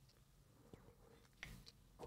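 A man gulps water from a bottle.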